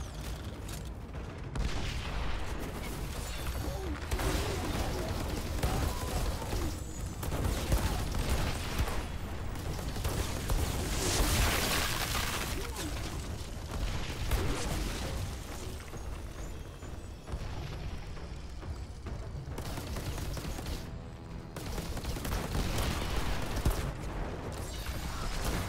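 Energy weapon fire crackles and zaps in rapid bursts.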